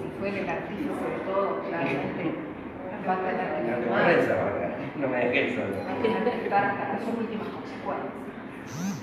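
Several adults talk and murmur nearby in a room.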